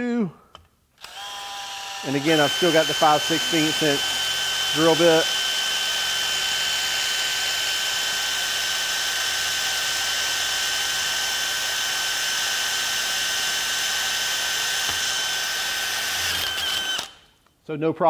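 A power drill whines steadily as it bores into metal.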